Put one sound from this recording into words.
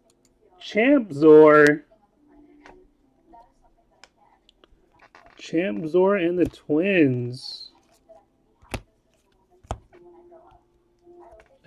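Trading cards rustle and tap as they are handled.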